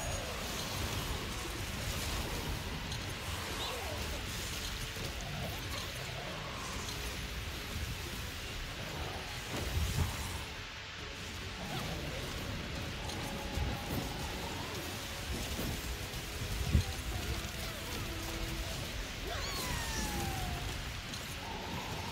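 Magic blasts crackle and boom in a video game.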